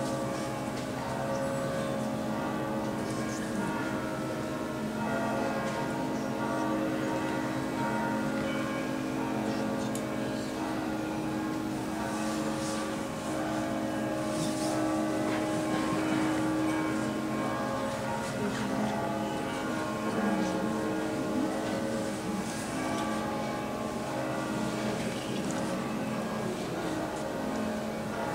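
A choir of voices sings a slow, sustained chant in a large echoing hall.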